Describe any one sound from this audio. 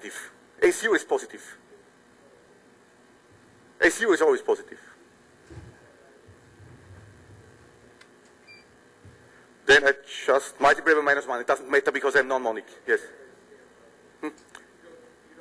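A man lectures calmly in short bursts.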